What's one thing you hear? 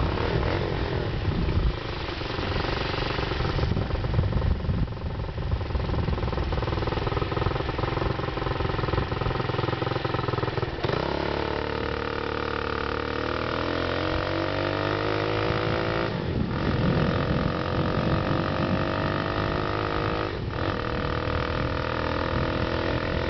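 Bicycle tyres roll on asphalt.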